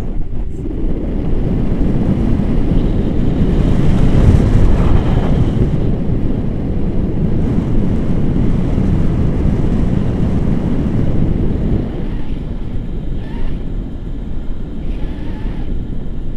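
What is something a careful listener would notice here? Strong wind buffets and roars past close by.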